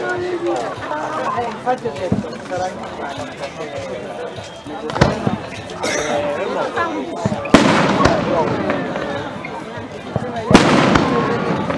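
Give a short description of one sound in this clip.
Fireworks crackle and sizzle after each burst.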